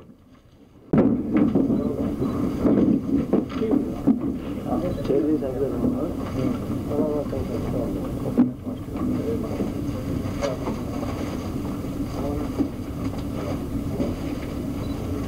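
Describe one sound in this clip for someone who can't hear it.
A crowd murmurs in a room.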